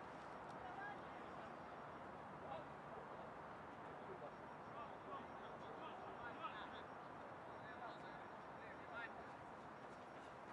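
Men shout to each other across an open field.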